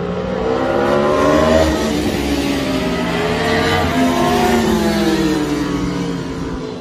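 Motorcycle engines roar loudly as the bikes speed past, rising and falling in pitch.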